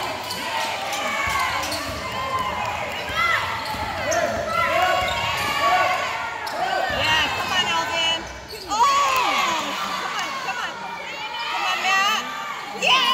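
Young players shout to one another.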